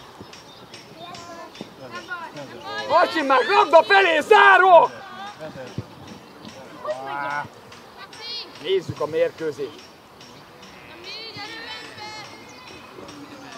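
Children shout and call out to each other across an open outdoor field.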